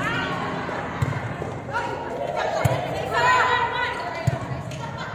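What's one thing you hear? Young girls shout and call out to each other in a large echoing hall.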